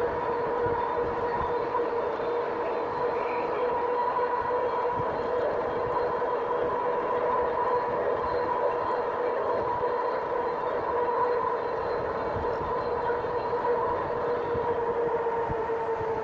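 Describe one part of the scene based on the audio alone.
Wind rumbles against a microphone while riding.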